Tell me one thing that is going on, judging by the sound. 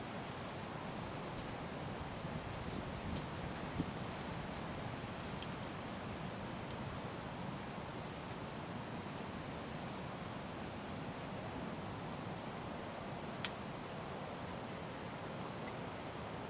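Wind blows steadily outdoors through trees.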